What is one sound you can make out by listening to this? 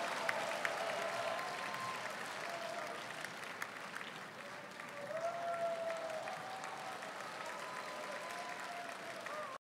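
A choir of men and women sings together through loudspeakers in a large echoing space.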